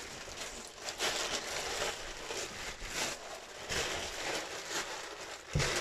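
Plastic sheeting rustles and crinkles.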